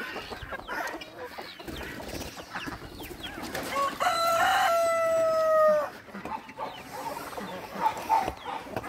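Many chickens cluck and squawk nearby.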